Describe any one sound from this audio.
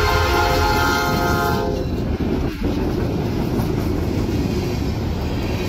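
Diesel freight locomotives rumble past close by.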